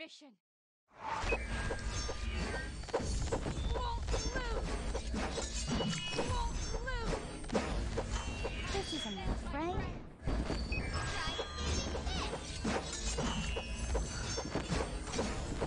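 Game sound effects of blasts and magic spells crash and whoosh in a rapid, busy battle.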